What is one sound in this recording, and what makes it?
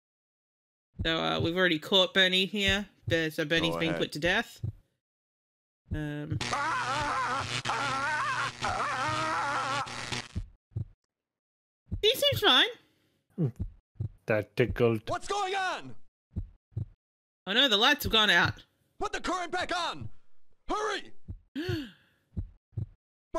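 Men talk with animation over an online call.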